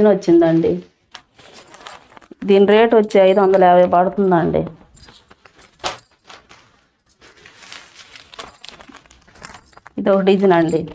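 Cloth rustles as it is handled.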